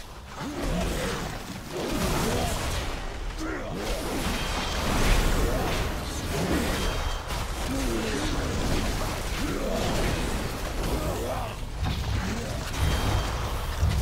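A man talks with animation through a close microphone.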